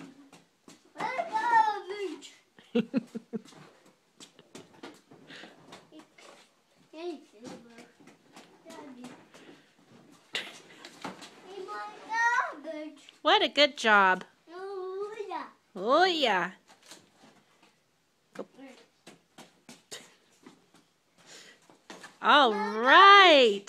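A young child babbles and squeals close by.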